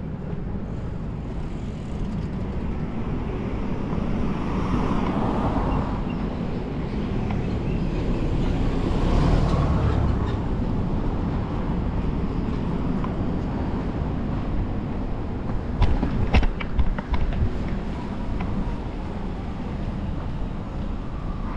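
Traffic rumbles past on a nearby street.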